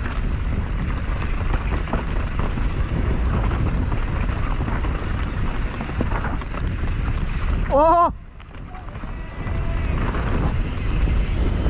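Bicycle tyres rumble and crunch over a bumpy dirt trail.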